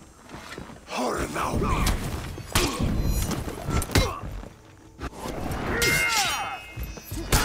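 Steel blades clash and ring in a sword fight.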